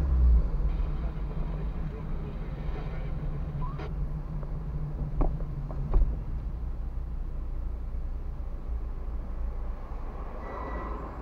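A car engine hums steadily from inside the car as it drives slowly along a street.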